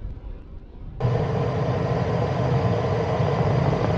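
Wind and road noise rush loudly past close by.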